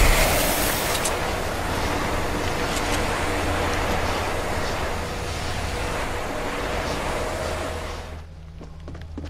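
A storm roars with a steady rushing hiss.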